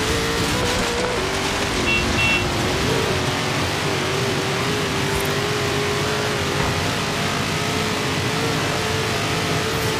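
A truck engine roars steadily as it speeds along.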